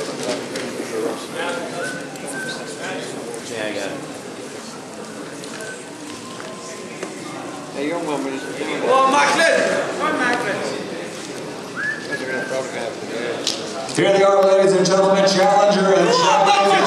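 A crowd of men and women talks and murmurs in a large room.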